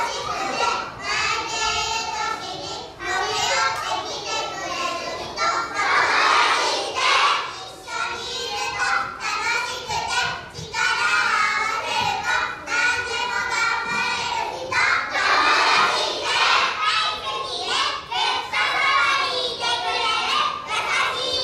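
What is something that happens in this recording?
A large group of young children sings together loudly in an echoing hall.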